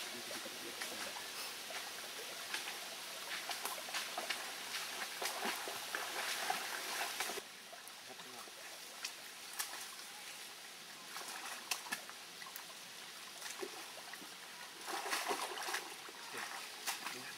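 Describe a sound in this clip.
Leaves rustle and twigs snap as people push through dense brush.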